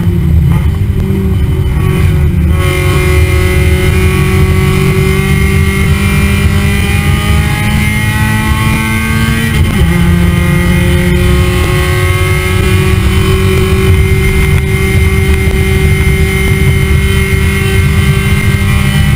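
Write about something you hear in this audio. Wind rushes past the car.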